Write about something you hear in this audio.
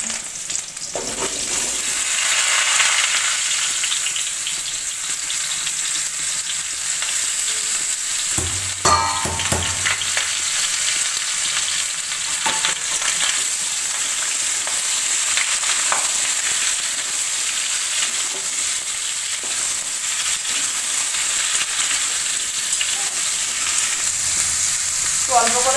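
Potatoes sizzle as they fry in hot oil.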